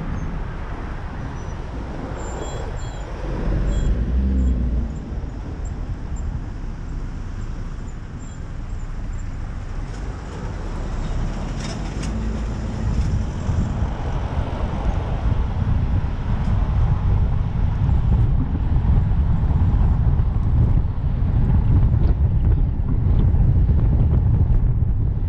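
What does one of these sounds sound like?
Wind rumbles against a microphone on a moving car.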